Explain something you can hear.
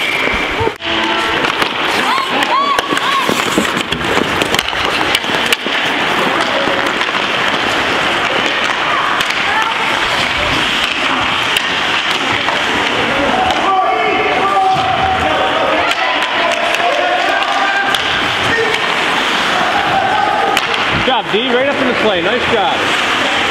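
A crowd of spectators cheers and shouts in an echoing rink.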